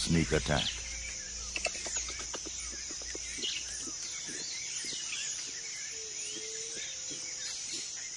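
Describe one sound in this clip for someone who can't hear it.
A coati sniffs and scratches at a tree branch.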